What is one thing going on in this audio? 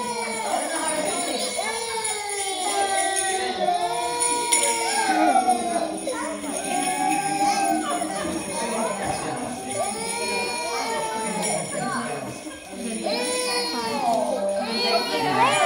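A toddler boy cries and wails loudly close by.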